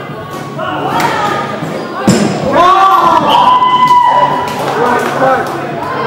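Young players shout and call out to each other in a large echoing hall.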